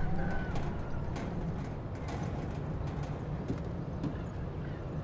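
Footsteps knock on wooden ladder rungs and boards.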